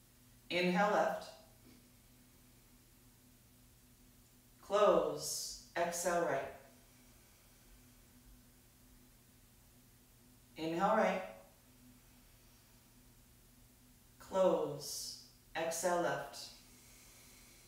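A young woman speaks calmly in short phrases.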